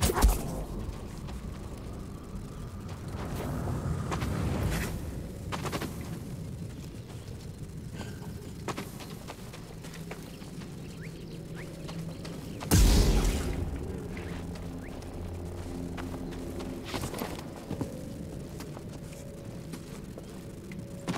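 Footsteps scuff over stone and grass.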